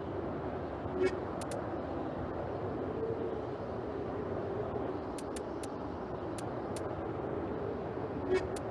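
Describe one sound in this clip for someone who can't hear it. Short electronic menu clicks sound as selections change.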